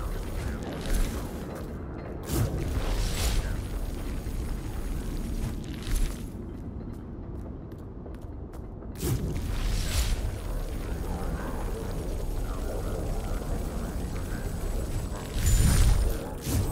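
A blade swishes through the air in quick slashes.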